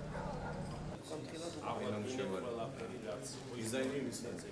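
Several men murmur and talk nearby.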